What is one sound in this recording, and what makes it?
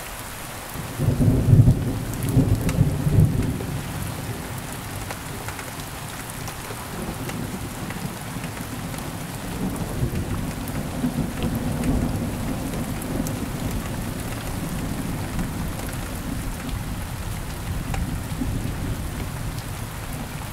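Thunder booms loudly and rumbles on in low rolls.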